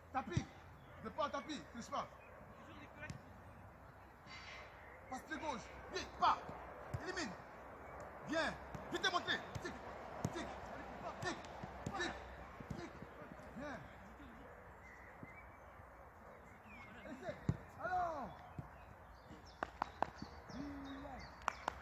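A football is kicked with sharp thuds on grass.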